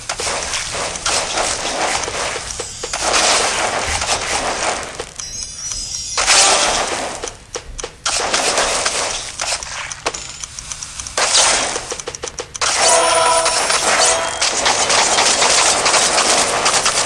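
Fruit splatters and squelches as a blade swipes through it.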